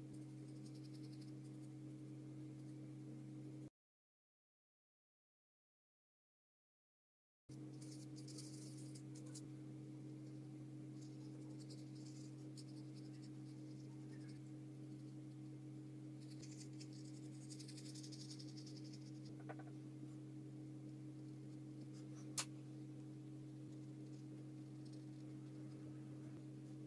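A paintbrush softly scratches and dabs on paper.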